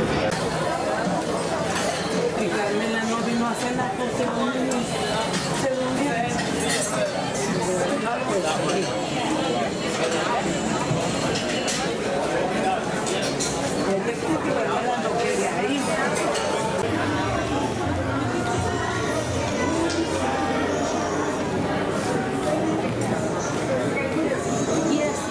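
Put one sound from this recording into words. A crowd of people chatter all around in a large, busy room.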